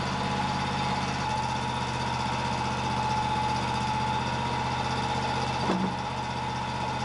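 An engine drones steadily nearby.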